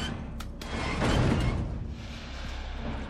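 A metal wheel creaks and grinds as it turns.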